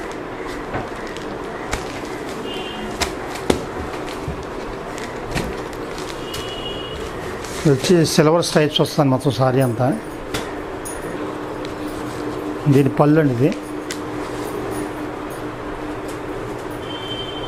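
Cloth rustles as hands unfold and smooth it.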